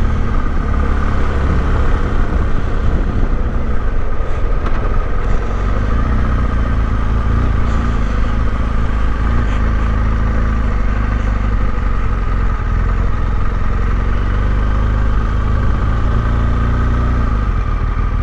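A motorcycle engine hums steadily at low speed close by.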